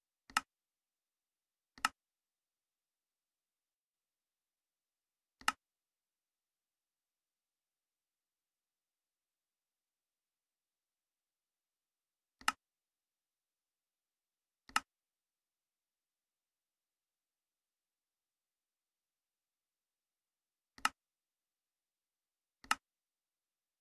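A game menu button clicks now and then, in short sharp clicks.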